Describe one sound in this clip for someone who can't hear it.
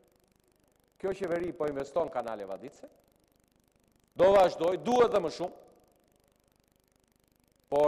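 A middle-aged man speaks forcefully into a microphone.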